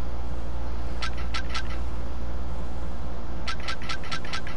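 Short electronic menu blips tick in quick bursts.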